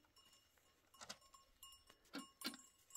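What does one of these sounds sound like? Glasses and dishes clink softly.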